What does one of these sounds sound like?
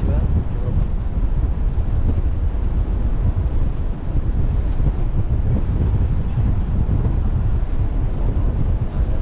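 Water rushes and splashes against a ship's bow.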